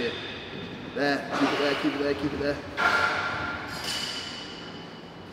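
A man grunts and groans with effort.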